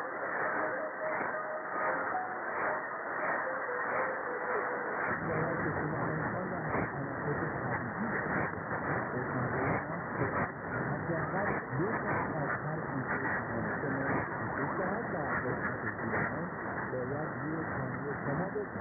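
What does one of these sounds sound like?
A radio hisses and crackles with static.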